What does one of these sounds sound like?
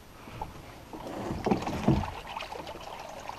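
Water sloshes as a landing net scoops through it.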